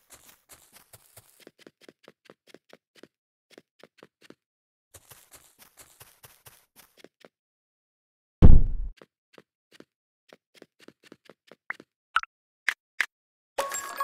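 Quick footsteps tap steadily on a hard floor.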